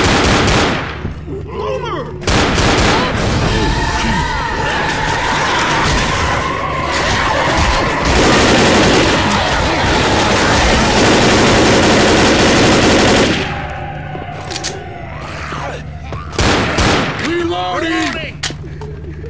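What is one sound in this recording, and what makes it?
Zombies growl and snarl close by.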